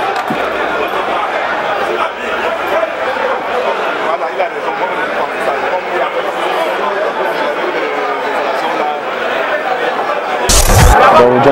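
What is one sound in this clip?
Men argue and shout on a field.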